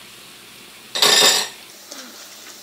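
Shredded cabbage drops into a hot pan with a sudden loud hiss.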